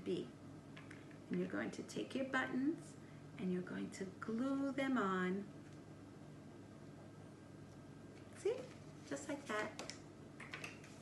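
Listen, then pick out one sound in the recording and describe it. A woman talks calmly and clearly close by.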